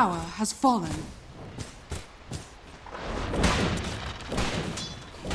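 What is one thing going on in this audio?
Video game combat sounds of blows and magic effects ring out in quick bursts.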